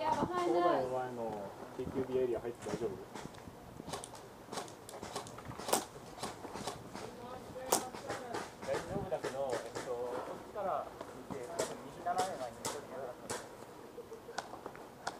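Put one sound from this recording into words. Paintball guns pop in quick shots.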